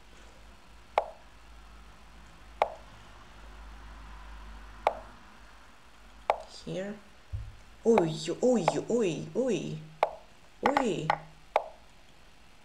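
Short clicks sound as chess pieces are moved.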